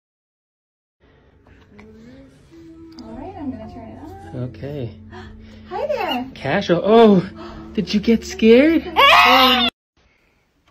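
A baby babbles and squeals up close.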